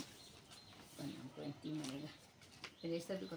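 A middle-aged woman talks calmly nearby.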